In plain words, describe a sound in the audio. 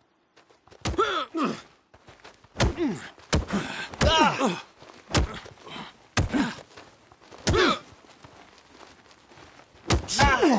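A man grunts and shouts loudly.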